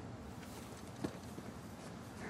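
A grappling hook clinks as it catches on rock.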